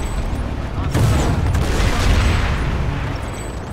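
A large explosion booms.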